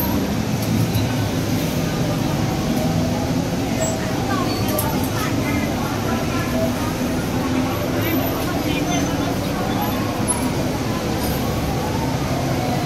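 A bus engine idles with a low, steady rumble close by.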